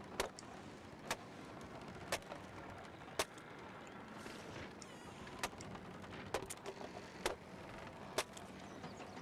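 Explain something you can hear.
Sharp knocks ring out at a steady pace as a wooden crate is broken apart.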